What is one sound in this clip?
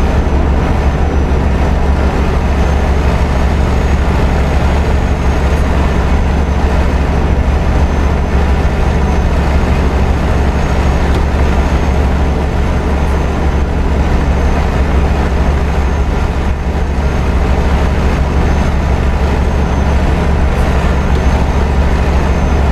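Tyres roll on the road with a steady rush.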